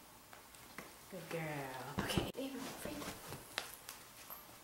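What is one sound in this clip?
A person speaks to a dog up close.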